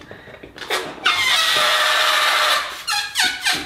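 Gas hisses loudly as it fills a balloon.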